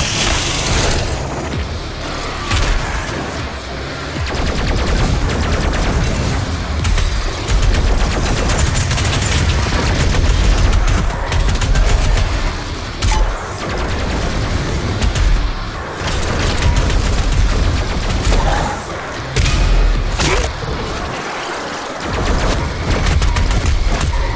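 Explosions boom and crack.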